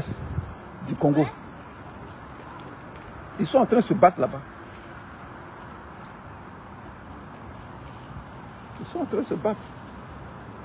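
A man speaks close to a phone microphone in short, hesitant bursts.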